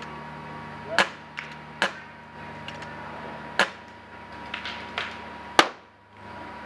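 Paintball markers fire sharp pops nearby.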